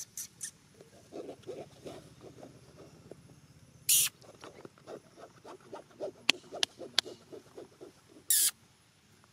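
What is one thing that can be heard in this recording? A monkey picks through another monkey's fur with soft, quick scratching.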